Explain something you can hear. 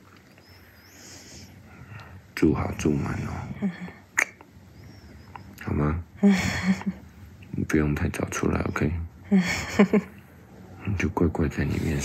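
A man gives soft kisses up close.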